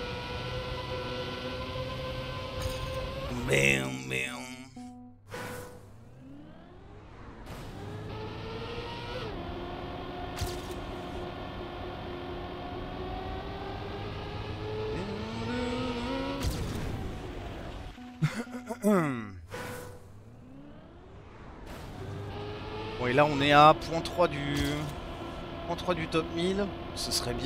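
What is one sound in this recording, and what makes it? A racing car engine whines, revving up and down with gear shifts.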